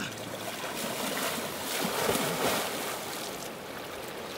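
A man kicks and splashes water.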